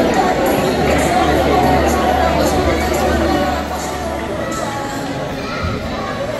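Young people and men chatter at a distance in a large echoing hall.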